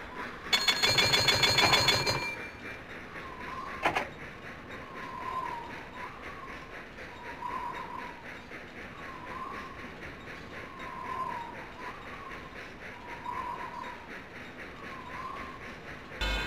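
A steam train chugs steadily along a track.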